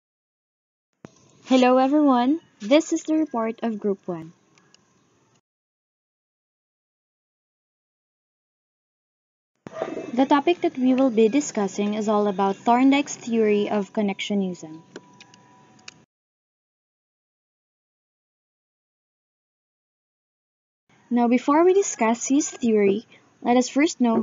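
A young woman speaks calmly into a microphone, pausing between phrases.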